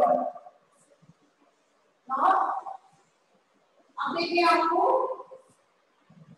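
A woman speaks clearly nearby.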